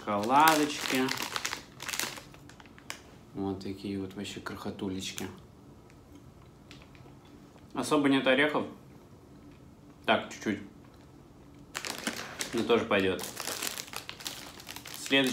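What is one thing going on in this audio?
A candy wrapper crinkles.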